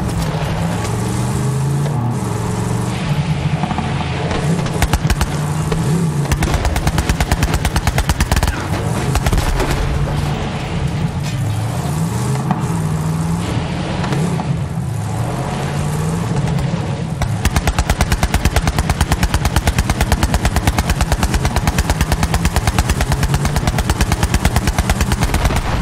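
A buggy engine revs and roars steadily.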